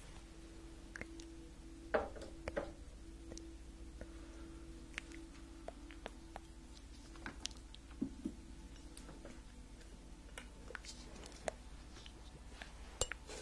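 A young woman whispers softly, very close to a microphone.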